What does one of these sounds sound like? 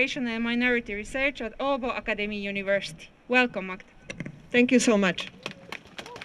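A woman speaks loudly and with emotion through a microphone and loudspeaker, outdoors.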